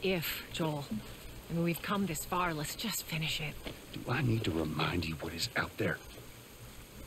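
A young woman speaks calmly close to a microphone.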